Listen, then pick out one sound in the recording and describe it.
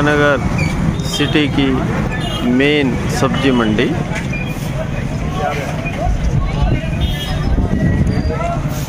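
Motorcycle engines rumble past on a busy street.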